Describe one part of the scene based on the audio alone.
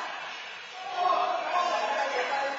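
A man shouts in an echoing indoor court.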